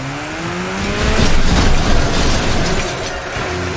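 Metal crunches as cars crash into each other.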